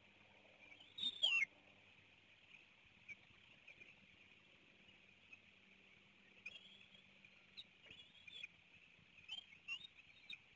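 Young eagles give high, thin whistling chirps nearby.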